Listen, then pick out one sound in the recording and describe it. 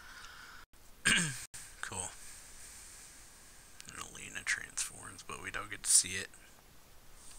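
A man speaks into a headset microphone.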